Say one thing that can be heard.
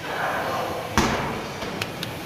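A ball drops and bounces on the floor with a heavy thud.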